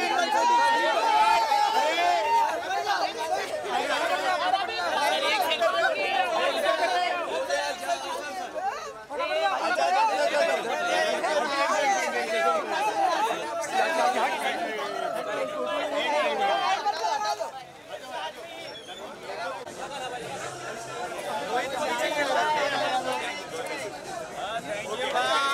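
A crowd of men talk and shout excitedly close by.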